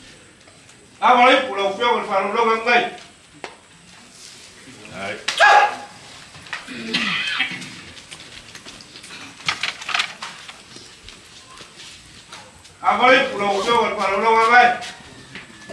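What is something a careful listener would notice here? A man shouts a loud chant.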